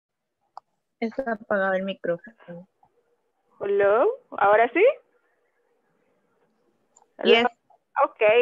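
A young woman speaks with animation over an online call through a headset microphone.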